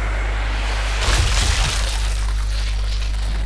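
A bullet strikes a head with a wet crunch.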